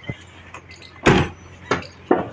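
A car door slams shut close by.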